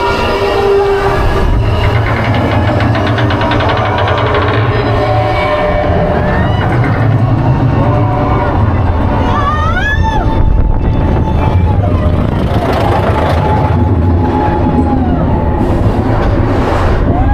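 A roller coaster rumbles steadily along its track.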